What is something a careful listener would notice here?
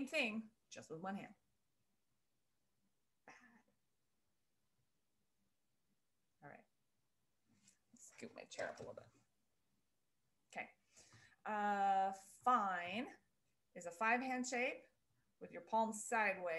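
A woman speaks close to a microphone with animation, in bursts separated by pauses.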